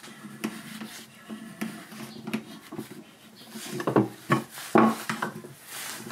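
A chisel scrapes and shaves wood in short strokes.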